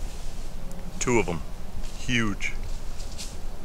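A man speaks briefly and loudly nearby, outdoors.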